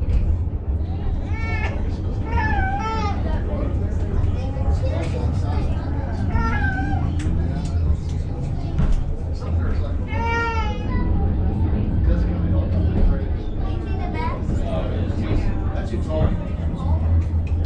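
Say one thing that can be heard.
A railway car rumbles steadily as it rolls along.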